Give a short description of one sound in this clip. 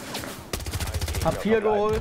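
Gunshots fire in short, quick bursts.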